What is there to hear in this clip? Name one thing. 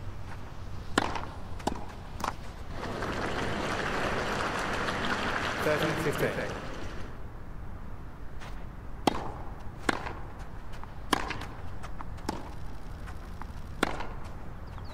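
Tennis balls are struck with sharp pops of a racket.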